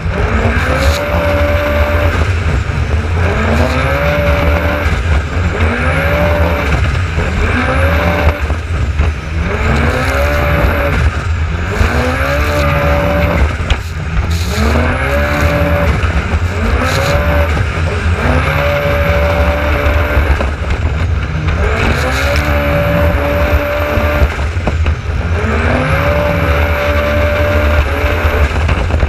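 Water splashes and sprays against the hull.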